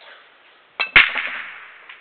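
A billiard ball smashes hard into a rack of balls.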